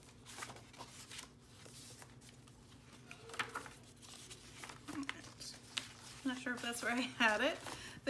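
Paper pages rustle as they are turned by hand.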